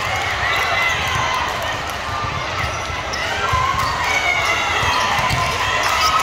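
Young girls call out to each other in a large echoing hall.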